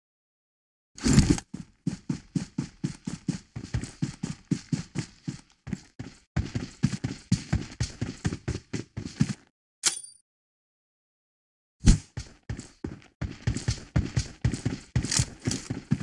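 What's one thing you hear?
Quick footsteps run over ground.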